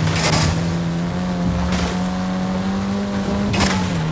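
Tall crop stalks thrash against a car.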